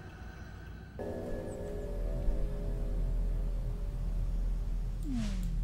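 Eerie music plays with steady low droning tones.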